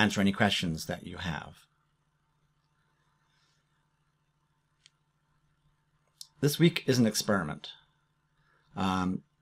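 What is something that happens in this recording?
A man speaks calmly into a close microphone, pausing between phrases.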